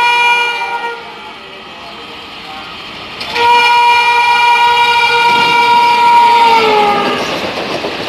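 A train horn blares loudly and drops in pitch as the locomotive passes.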